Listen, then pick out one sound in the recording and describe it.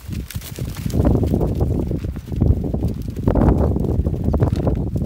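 A herd of Barbary sheep shuffles and treads on dry stony ground.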